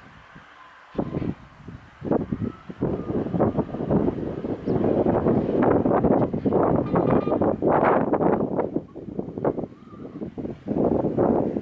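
Strong wind gusts and buffets outdoors.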